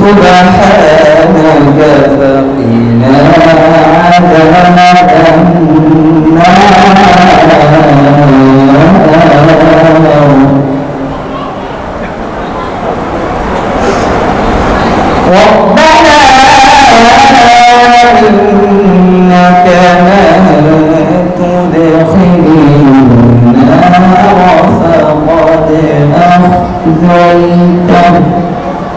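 A young man chants a melodic recitation through a microphone.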